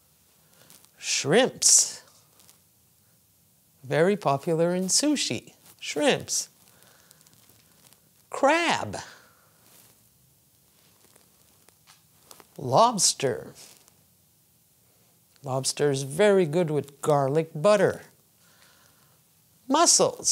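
An older woman speaks clearly and slowly into a close microphone, pausing between phrases.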